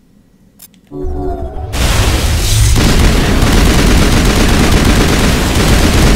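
Gunfire and a loud explosion roar in a game battle.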